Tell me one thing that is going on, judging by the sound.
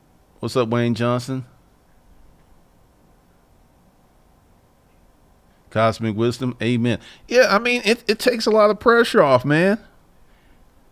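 A man speaks calmly and close to a microphone, pausing between phrases.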